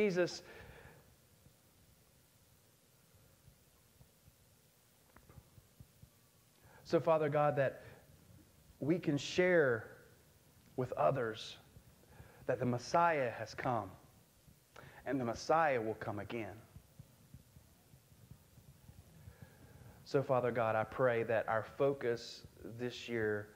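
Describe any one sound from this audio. A man speaks with animation through a microphone in a large room, with pauses between phrases.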